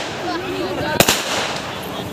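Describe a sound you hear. Fireworks burst with a sharp bang outdoors.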